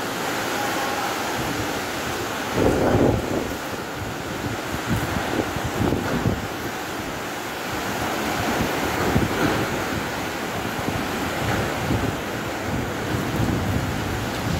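Trees rustle and thrash in the wind.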